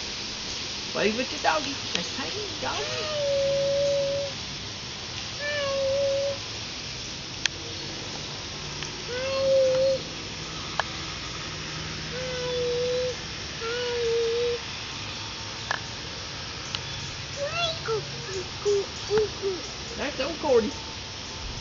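A toddler babbles and coos in short, drawn-out calls.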